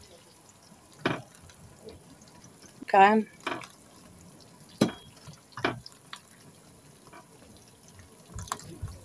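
Soft dumplings drop with wet thuds into a pan.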